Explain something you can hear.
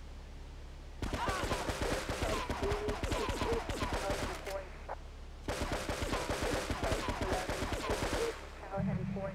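Rapid pistol shots ring out in bursts.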